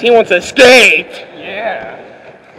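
A young man talks close to the microphone.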